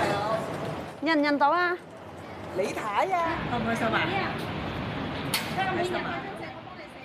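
A woman speaks warmly nearby.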